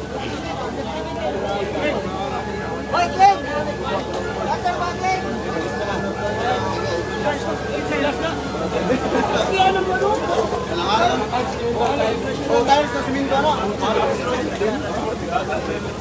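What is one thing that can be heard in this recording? A crowd of men and women talk and shout nearby, outdoors.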